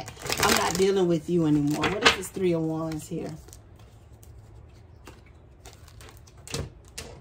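A hand shuffles and handles playing cards on a tabletop.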